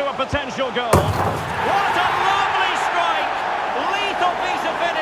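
A large crowd roars and cheers loudly.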